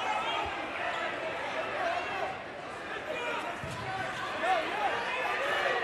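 A crowd in a large echoing gym cheers and shouts throughout.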